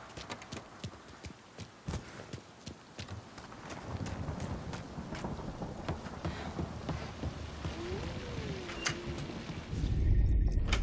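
Footsteps crunch on gravel, then thump on wooden stairs.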